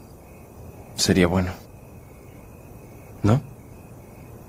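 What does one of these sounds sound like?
A teenage boy speaks softly and close by.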